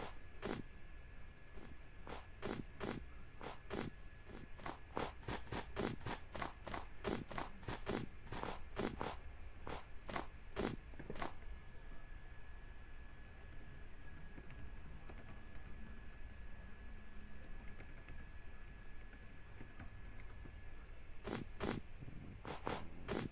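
Footsteps crunch on snow at a walking pace.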